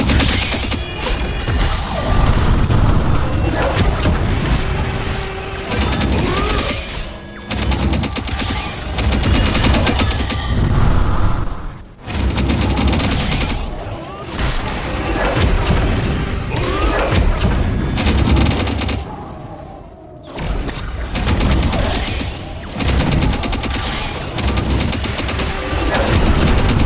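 Game attack effects blast and crackle in rapid bursts.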